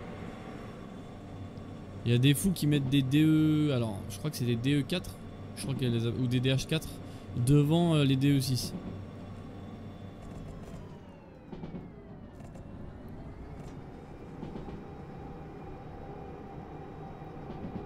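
Train wheels clatter along the rails.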